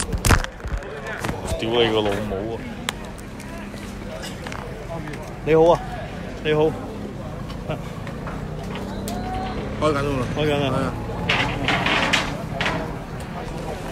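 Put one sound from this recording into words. A man speaks close to a phone microphone.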